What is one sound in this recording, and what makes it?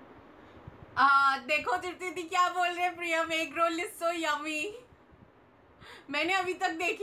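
A young woman speaks cheerfully and closely into a microphone.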